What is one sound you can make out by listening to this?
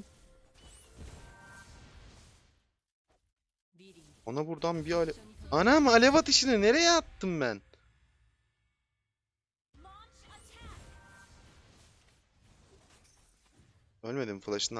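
Video game spell and hit effects whoosh and clash in short bursts.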